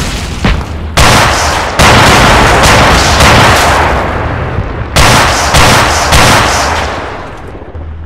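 Heavy explosions boom and roar one after another.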